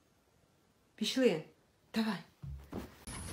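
A dog howls and grumbles up close.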